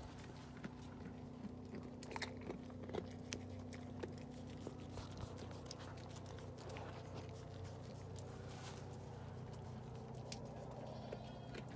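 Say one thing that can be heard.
A newborn lamb suckles with soft wet smacking sounds.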